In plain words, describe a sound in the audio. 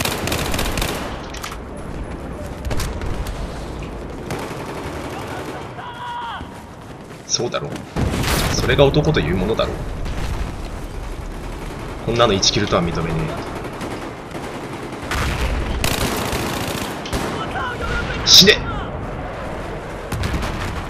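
Gunfire and explosions boom in the distance.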